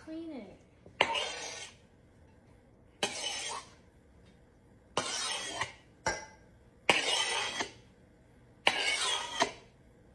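A spatula scrapes repeatedly across a hard countertop.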